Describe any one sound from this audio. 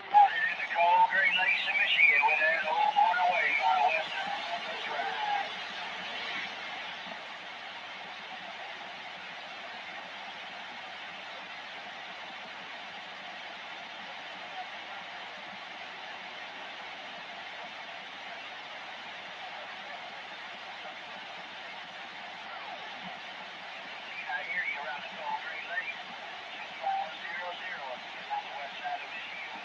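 A man's voice comes through a radio loudspeaker, crackly and distorted.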